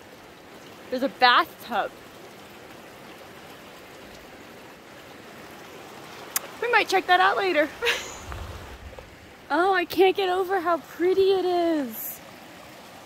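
A young woman talks cheerfully close to the microphone.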